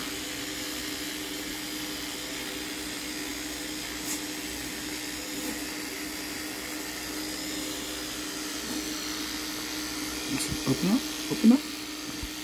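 An electric toothbrush buzzes steadily.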